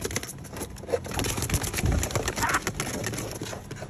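A parrot flaps its wings against cardboard.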